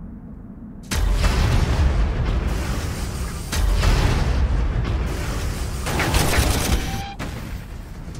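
Tank cannons fire with loud booming blasts and explosions.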